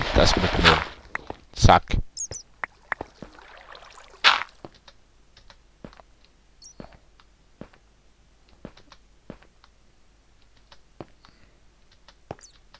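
Footsteps tap on stone at an uneven pace.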